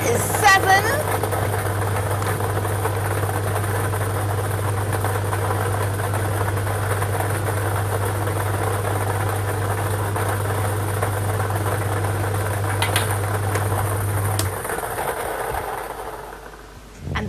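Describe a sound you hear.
Lottery balls rattle and tumble in a spinning drum.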